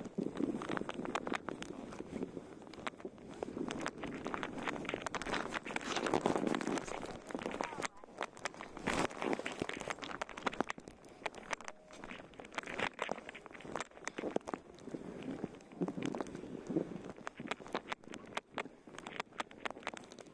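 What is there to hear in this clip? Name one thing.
Skis hiss and crunch through deep snow.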